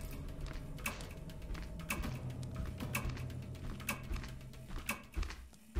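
Footsteps thud slowly and evenly on a wooden floor.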